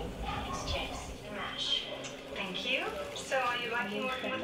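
A woman speaks through a television's loudspeaker.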